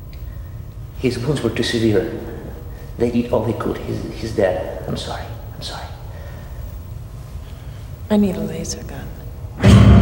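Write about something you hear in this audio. A young woman speaks quietly and anxiously.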